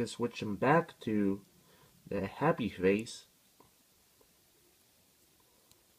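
Small plastic toy parts click and snap together.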